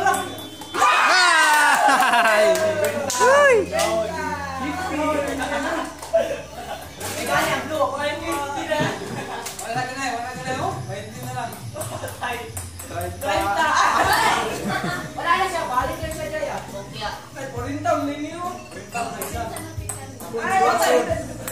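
Children and teenagers shout and laugh excitedly nearby.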